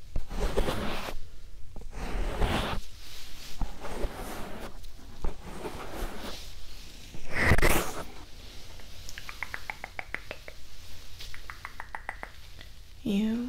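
Hands brush and rustle right against the microphone.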